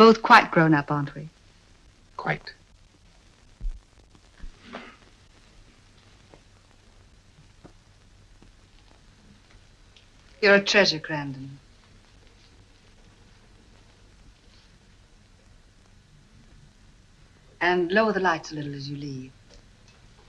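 A woman speaks warmly and softly, close by.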